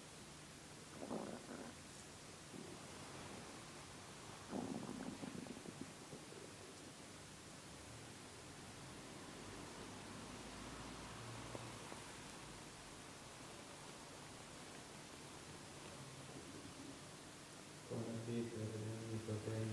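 A man murmurs prayers quietly in an echoing room.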